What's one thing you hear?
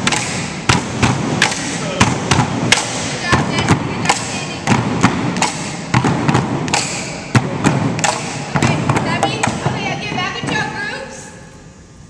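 Wooden poles clack together in a quick, steady rhythm in an echoing hall.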